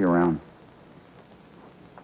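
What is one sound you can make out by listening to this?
A man speaks briefly and cheerfully.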